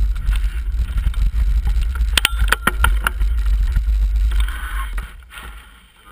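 Bicycle wheels roll and rattle over bumpy ground.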